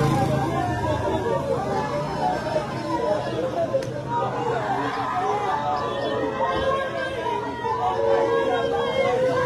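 A crowd of women talk and call out loudly nearby, outdoors.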